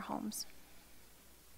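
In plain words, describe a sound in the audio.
A young woman speaks briefly through a microphone.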